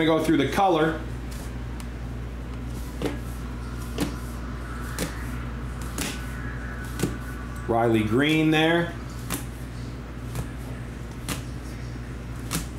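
Plastic card cases click and tap as they are flipped through by hand.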